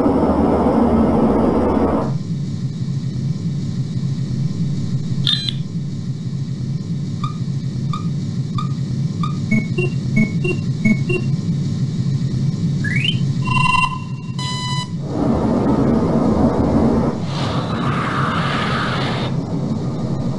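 Jet engines roar loudly as planes fly past.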